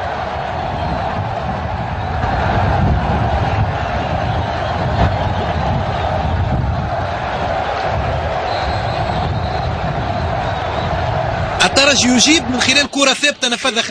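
A large crowd roars and cheers loudly in a stadium.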